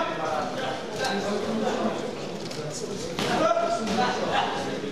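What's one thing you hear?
Boxing gloves thump against a boxer.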